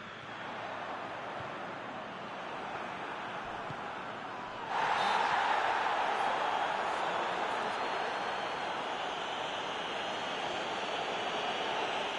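A large stadium crowd roars steadily and swells louder partway through.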